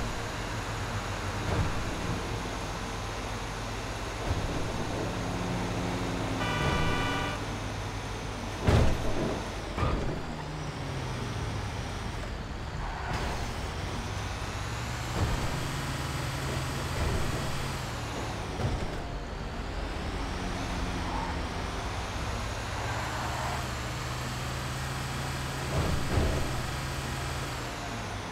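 A heavy truck engine rumbles steadily as it drives along a road.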